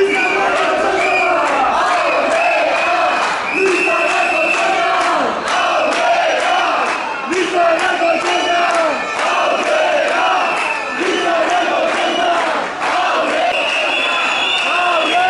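A crowd of young men and women chants loudly in unison outdoors.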